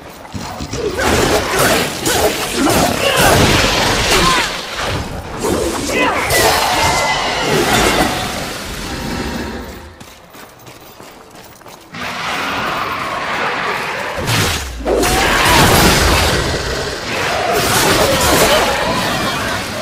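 Monstrous creatures snarl and screech.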